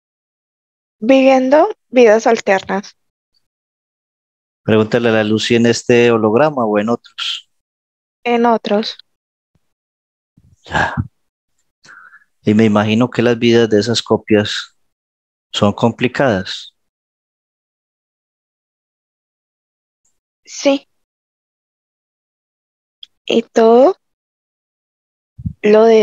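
A man speaks calmly through a headset microphone over an online call.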